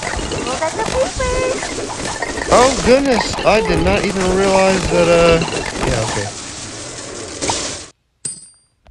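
Cartoonish game sound effects pop and crackle rapidly.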